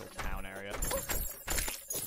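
A sword swishes through the air in quick strokes.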